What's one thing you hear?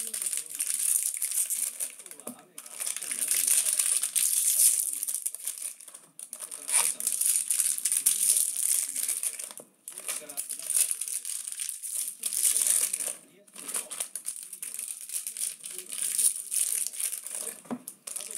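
Foil wrappers crinkle and rustle close by as hands tear them open.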